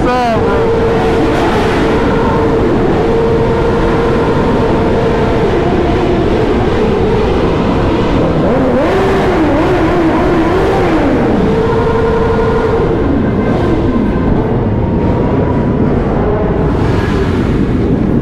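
Many motorcycle engines rumble and rev loudly, echoing under a bridge.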